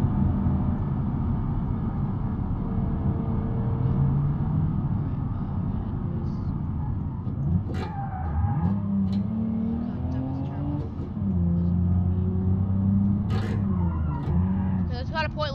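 A car engine hums steadily, its pitch rising and falling as the car speeds up and slows down.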